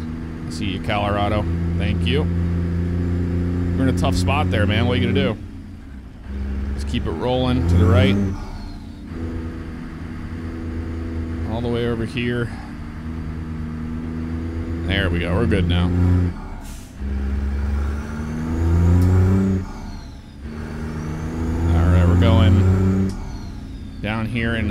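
A truck's diesel engine drones and rises in pitch, dropping briefly between gear changes.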